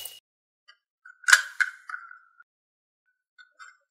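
A lid unscrews from a jar.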